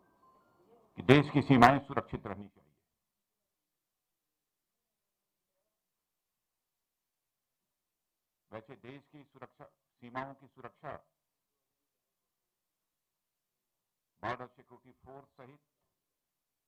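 An elderly man speaks calmly into a microphone in short bursts.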